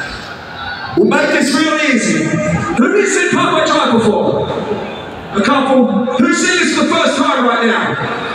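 A singer's voice rings out over loudspeakers.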